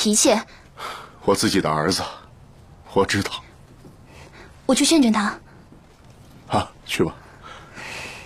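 An older man speaks in a low, tired voice.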